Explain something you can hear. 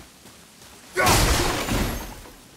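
A wooden crate smashes apart loudly.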